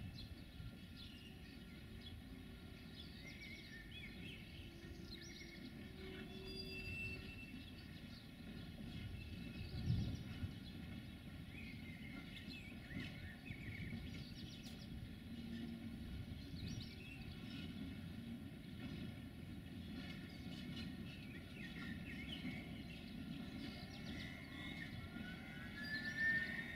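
Railway wagons roll slowly along a track with a low, steady rumble.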